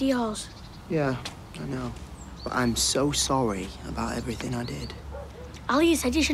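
A teenage boy speaks sharply, close by.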